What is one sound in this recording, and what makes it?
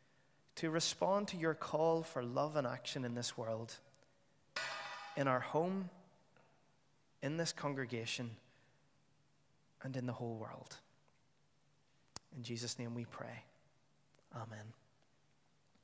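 A man reads aloud calmly into a microphone, in a hall with a slight echo.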